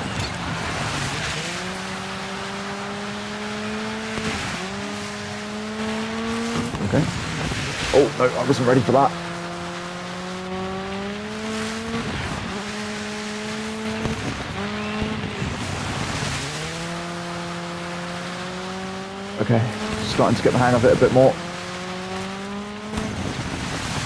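A rally car engine revs hard, rising and dropping as the driver shifts gears.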